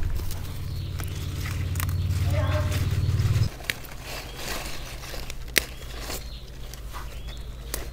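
Leafy stems snap as they are picked.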